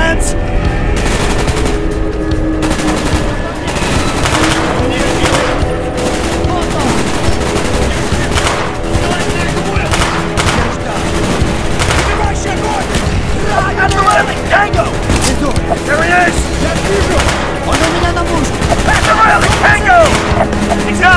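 Gunfire crackles in sharp bursts.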